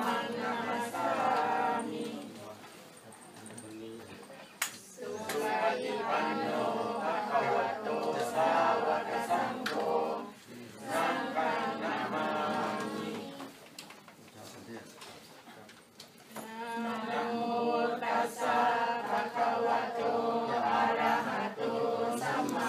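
A group of people chant prayers together in unison, pausing now and then.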